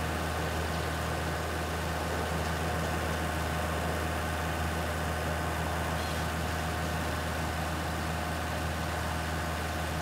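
A forage harvester chops and blows material into a trailer.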